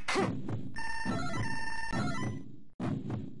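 Electronic beeps tick rapidly as a score counts up.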